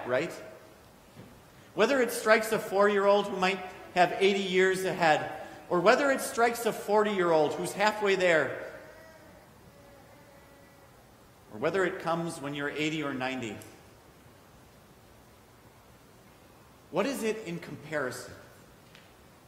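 A man speaks calmly into a microphone in a room with a slight echo, with long pauses.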